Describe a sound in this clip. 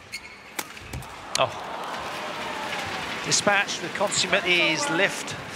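An arena crowd cheers and applauds.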